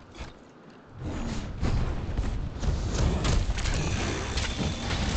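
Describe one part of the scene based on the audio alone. A large beast roars and thrashes nearby.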